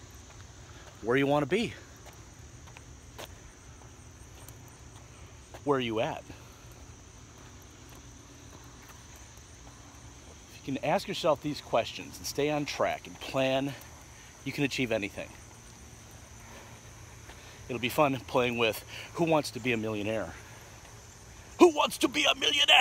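A middle-aged man talks with animation, close to a microphone, in short bursts.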